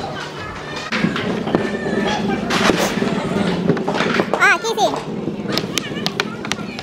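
Wooden pucks slide and knock on a wooden board.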